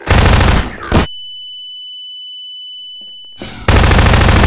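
A high steady ringing tone sounds after a blast.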